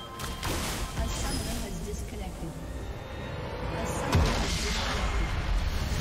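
Magic spells crackle and burst in a lively fight.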